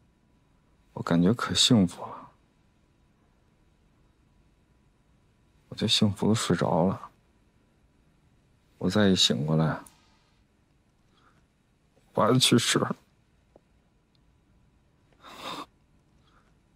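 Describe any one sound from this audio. A man speaks quietly and sadly, close by, in short phrases.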